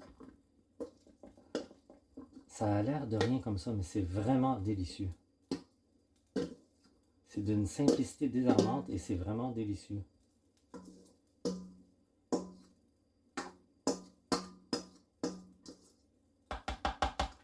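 A spatula scrapes food out of a metal bowl.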